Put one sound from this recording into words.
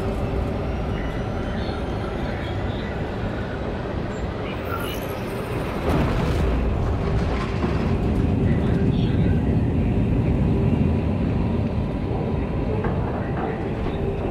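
A deep engine rumble drones steadily, growing louder midway.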